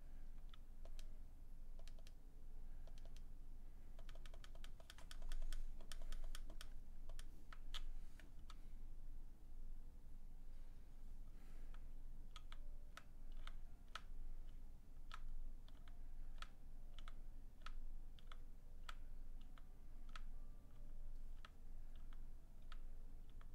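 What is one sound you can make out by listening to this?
Quiet video game music plays.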